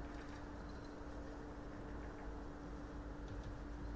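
A snooker cue tip is rubbed with chalk.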